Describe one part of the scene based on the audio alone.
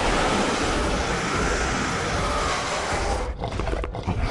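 A monster roars loudly.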